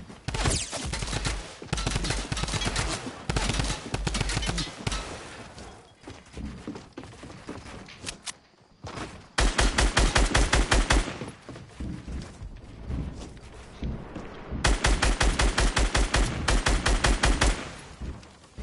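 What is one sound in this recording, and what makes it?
Building pieces clatter into place in rapid bursts.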